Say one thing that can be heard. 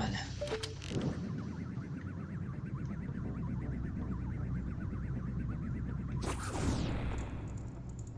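A chain shoots out with a fast, rattling whir.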